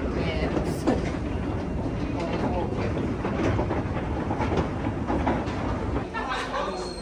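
An escalator rumbles and clatters steadily.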